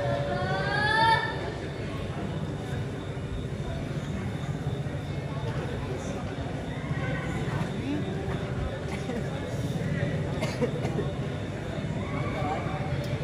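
A woman performs with an expressive voice on a stage, heard through a loudspeaker in a large hall.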